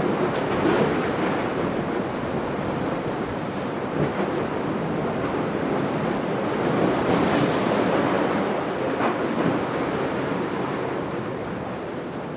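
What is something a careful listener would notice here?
Water rushes and churns in the yacht's wake.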